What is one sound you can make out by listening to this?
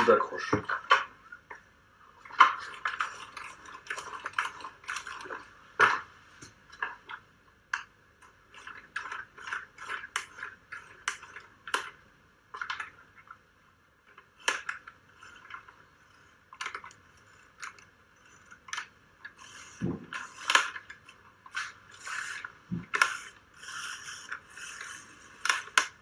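Small plastic and metal parts click and clatter as they are handled.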